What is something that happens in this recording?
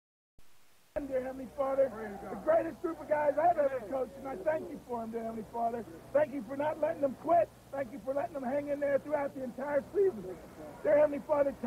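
A man prays aloud in a calm, steady voice outdoors.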